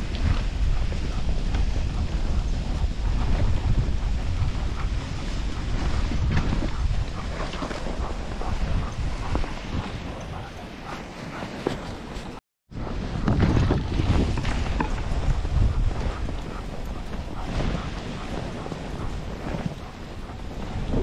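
Sled runners hiss and scrape over packed snow.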